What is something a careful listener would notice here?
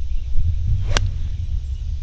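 A golf club splashes a ball out of sand with a sharp thump.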